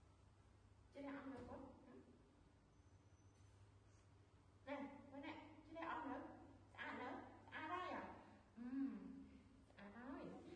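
A woman speaks in an animated, playful voice close by.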